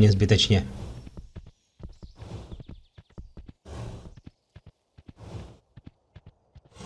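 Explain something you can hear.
A horse's hooves thud quickly along the ground.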